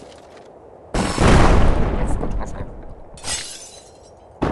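A stone smashes into a stone tower.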